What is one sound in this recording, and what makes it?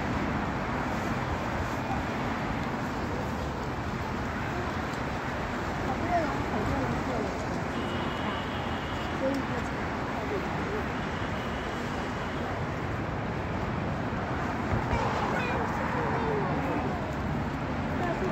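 People talk in a crowd in the distance.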